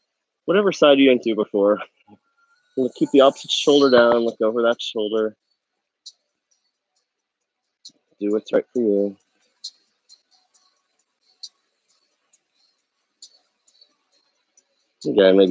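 A man speaks calmly and slowly, close by, pausing between phrases.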